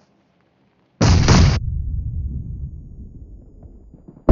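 An explosion booms nearby and rumbles away.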